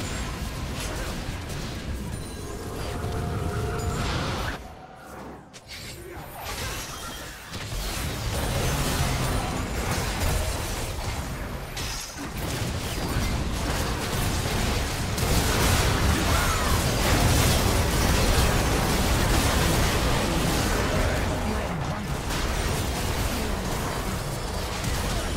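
Weapons clash and strike repeatedly in a game fight.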